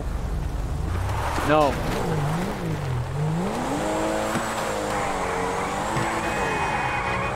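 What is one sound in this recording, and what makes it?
A car engine revs and roars as the car speeds away.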